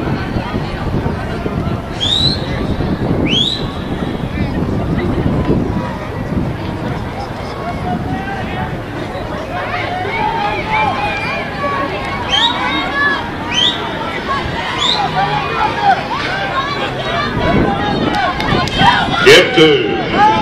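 A crowd of spectators cheers and shouts across an open stadium.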